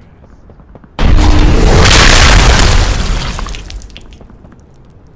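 A loud magical whoosh roars up suddenly and slowly fades.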